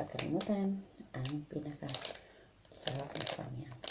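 A wrapper crinkles in a woman's hands.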